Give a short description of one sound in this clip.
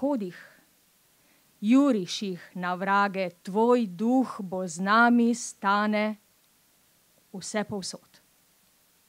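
A middle-aged woman speaks calmly into a microphone outdoors.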